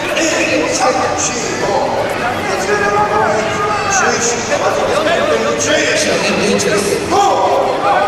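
A man shouts commands loudly.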